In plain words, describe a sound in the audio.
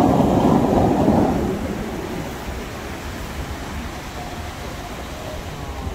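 Fountain jets rush and splash loudly, then fade away.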